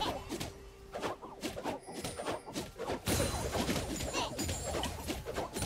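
Fantasy battle effects clash, crackle and boom.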